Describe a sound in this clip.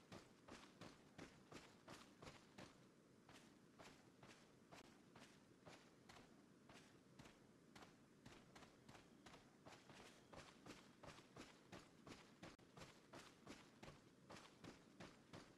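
Footsteps crunch steadily through dry leaves.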